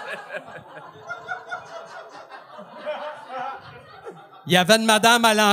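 Several men laugh heartily nearby.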